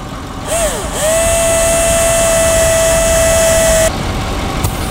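A power drill whirs up to a steady high whine, then stops.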